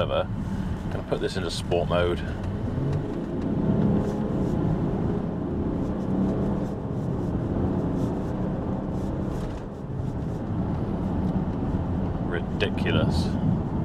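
A car engine hums steadily with road rumble inside the cabin.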